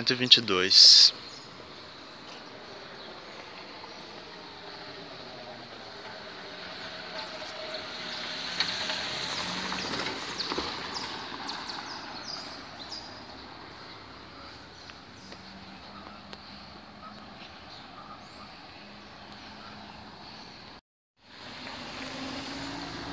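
A bus engine idles steadily nearby.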